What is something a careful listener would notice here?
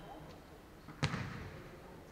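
A ball thuds off a foot in an echoing hall.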